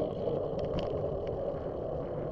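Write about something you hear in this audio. A person's footsteps pass close by on a paved path.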